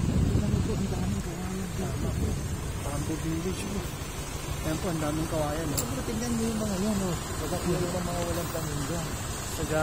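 A pickup truck engine hums close by.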